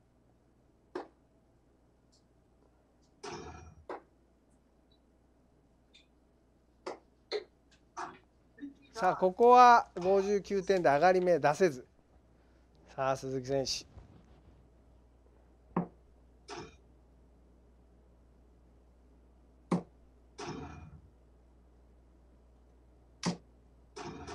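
Darts strike a dartboard with sharp clicks.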